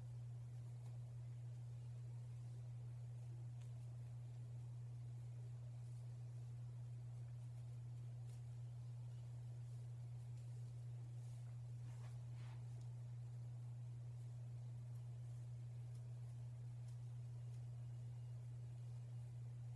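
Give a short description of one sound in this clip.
Hair rustles softly as fingers twist it close by.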